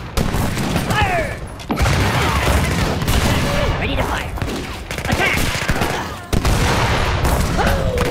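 Soldiers' weapons clash in a noisy battle.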